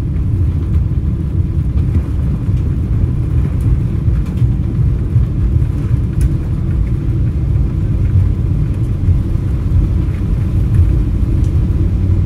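Airliner wheels rumble over the runway.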